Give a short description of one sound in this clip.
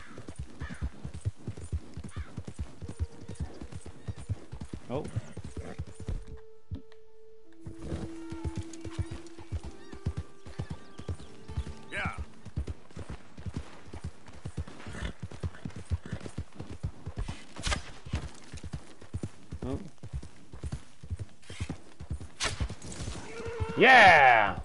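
Horse hooves thud in a quick, steady rhythm on soft ground.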